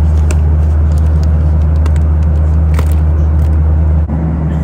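A snack bag crinkles as a hand reaches into it.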